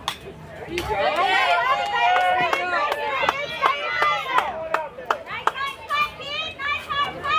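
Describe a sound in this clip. Young girls cheer and shout outdoors.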